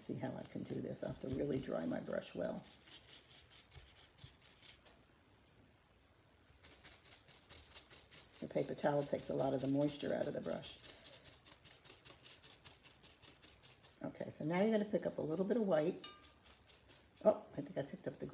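A paintbrush dabs and swishes against a ceramic piece.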